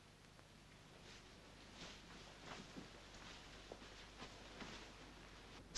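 Clothing rustles softly.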